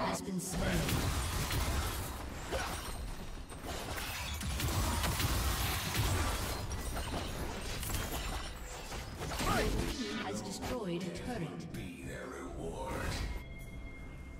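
Fantasy video game combat effects clash and boom.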